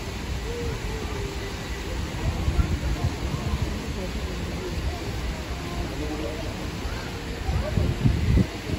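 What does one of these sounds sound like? A waterfall splashes steadily into a pond.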